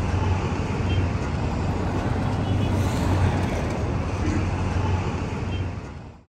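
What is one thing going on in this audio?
Traffic hums on a city street.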